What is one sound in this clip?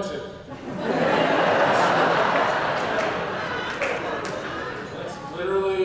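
Several men on a panel laugh heartily.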